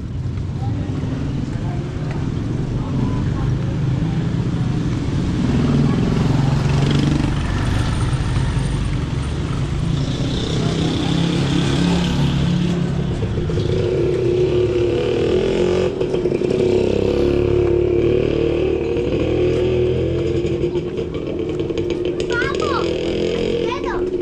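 Outdoors, a low hum of street traffic carries throughout.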